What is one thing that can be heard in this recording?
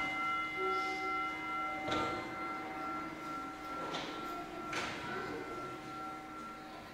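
A man chants slowly through a microphone in an echoing hall.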